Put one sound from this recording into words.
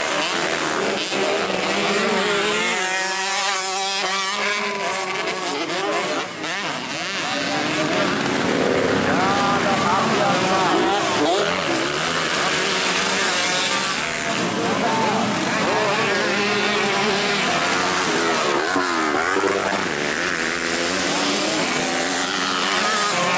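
Several dirt bikes rev hard as they race past.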